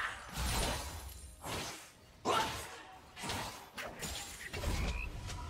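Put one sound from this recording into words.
Game spells and weapons burst and clash in a fight.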